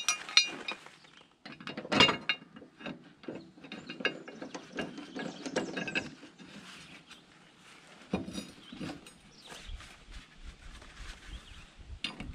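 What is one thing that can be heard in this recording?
A metal mower blade clinks and scrapes against metal.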